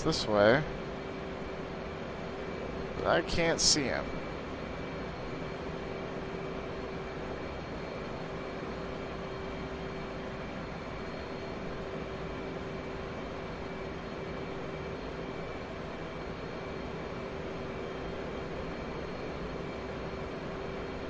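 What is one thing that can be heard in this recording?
A jet engine roars and hums steadily.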